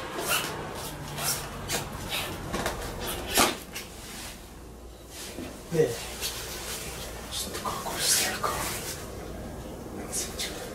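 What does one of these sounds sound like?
A padded jacket rustles and scrapes close by.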